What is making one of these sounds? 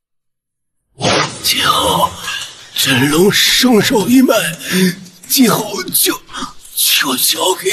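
An elderly man speaks urgently and strained, close by.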